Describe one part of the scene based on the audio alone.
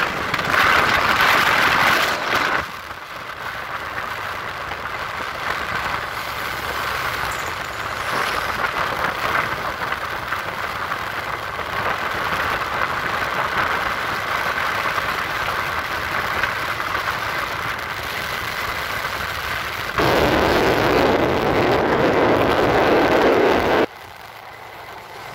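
A motorbike engine hums steadily while riding along a road.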